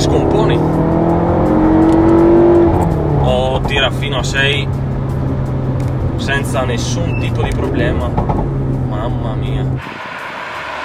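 A car engine hums steadily from inside the cabin, shifting gear as it speeds up.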